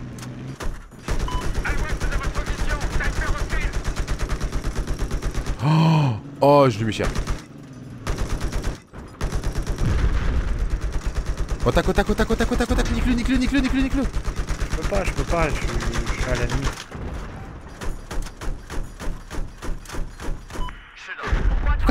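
A rapid-fire cannon fires in long, fast bursts.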